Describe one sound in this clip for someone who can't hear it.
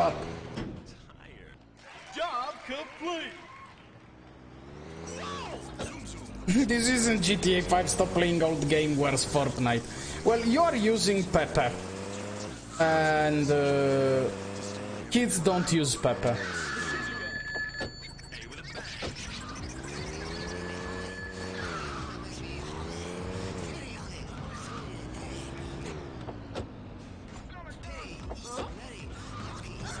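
A car engine hums and revs as a car drives.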